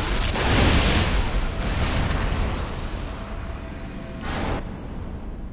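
A futuristic energy device crackles and hums with a bright burst.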